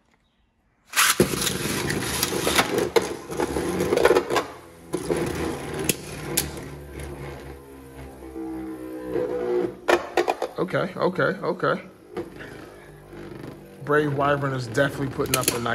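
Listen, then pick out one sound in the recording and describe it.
Two spinning tops whir and grind across a plastic bowl.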